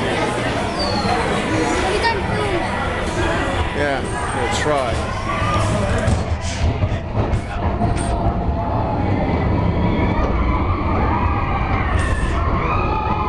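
A crowd of people chatter loudly all around.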